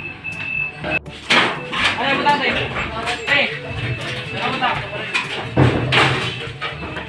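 Metal items clank and bang as men load a truck.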